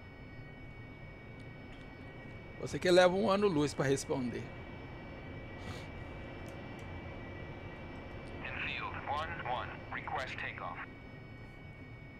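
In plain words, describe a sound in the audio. A jet engine whines as a jet taxis on a runway.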